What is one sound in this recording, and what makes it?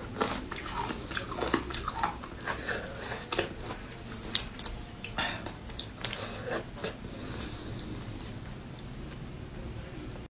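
Shells crack and crunch as fingers peel seafood close by.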